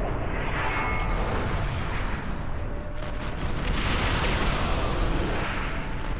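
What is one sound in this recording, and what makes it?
A huge energy blast roars and booms.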